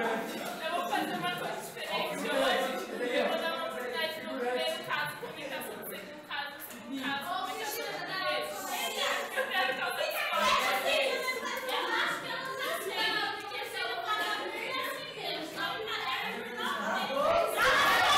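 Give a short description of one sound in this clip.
A young woman speaks with animation in an echoing room.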